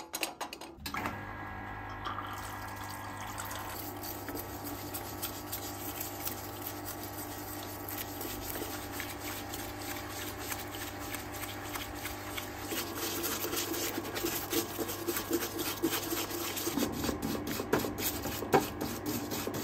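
A pump hums steadily.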